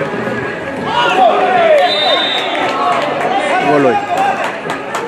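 A crowd of spectators cheers loudly after a goal.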